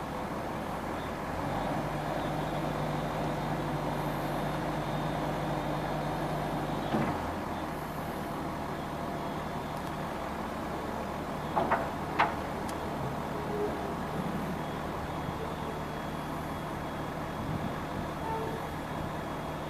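Hydraulics whine as a loader bucket lifts and lowers.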